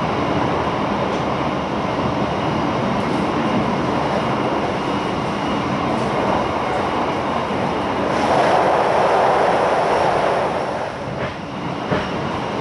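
Wind rushes past an open train window.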